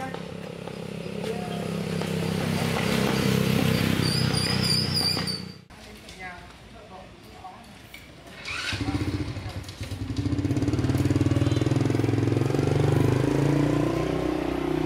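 A motorbike engine idles and revs nearby.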